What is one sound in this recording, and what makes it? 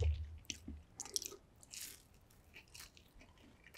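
A man licks his fingers with wet smacking sounds.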